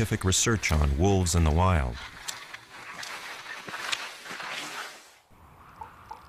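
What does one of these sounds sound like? Snowshoes crunch steadily through snow.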